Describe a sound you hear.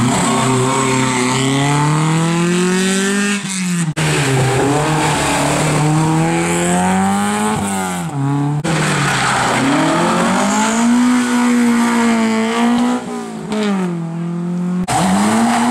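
A rally car engine revs hard, rising and falling in pitch as it races past.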